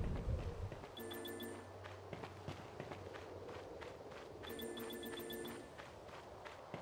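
A bright electronic chime rings as items are collected.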